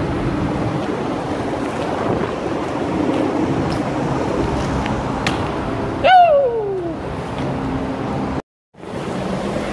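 Bike tyres roll and scrape on concrete.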